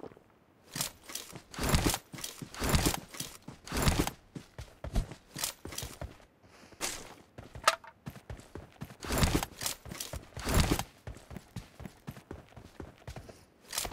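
Footsteps run over grass and gravel.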